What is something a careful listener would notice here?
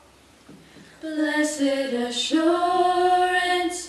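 Young girls sing together in harmony through a microphone in an echoing hall.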